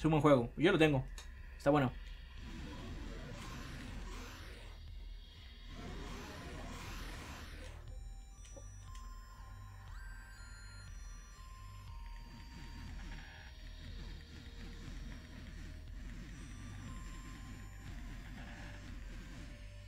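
Electronic video game music and beeping effects play.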